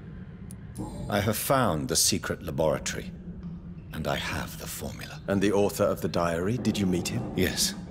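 An older man answers calmly, close by.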